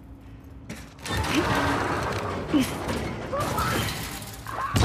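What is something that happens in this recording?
A heavy door slides open with a loud rumble.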